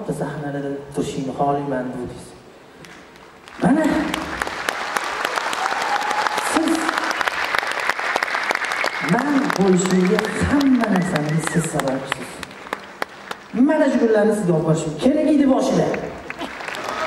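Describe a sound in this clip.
A young man sings into a microphone over loudspeakers in a large hall.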